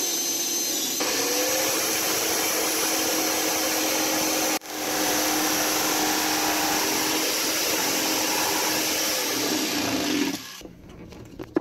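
A power saw buzzes loudly as it cuts through a panel.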